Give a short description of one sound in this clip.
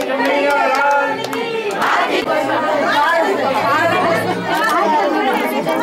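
A crowd of men talks and shouts close by.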